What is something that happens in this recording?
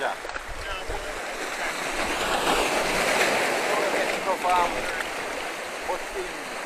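Waves wash and splash against rocks close by.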